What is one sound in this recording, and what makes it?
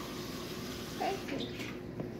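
A plastic squeeze bottle sputters as sauce squirts out.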